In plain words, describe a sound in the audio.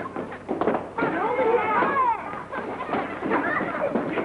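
Children chatter and clatter about in a room.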